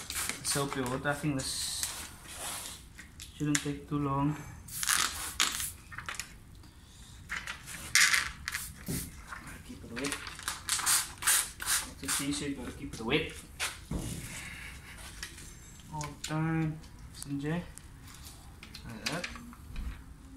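A plastic sheet of window tint film crinkles as it is handled.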